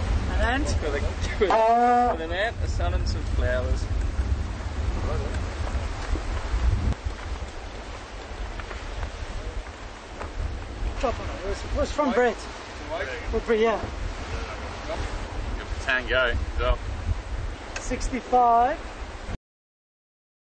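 Wind buffets loudly against the microphone.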